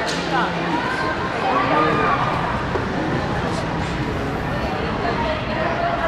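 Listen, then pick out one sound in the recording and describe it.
Hockey skates scrape and glide on ice in an echoing indoor rink.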